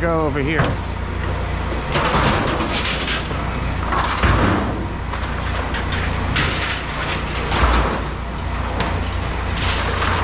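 A sheet of metal rattles and clangs as it is carried.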